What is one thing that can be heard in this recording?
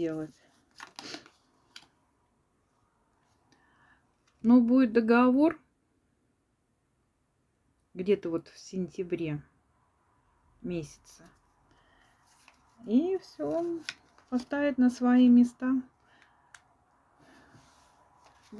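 Playing cards rustle and slide softly as they are handled.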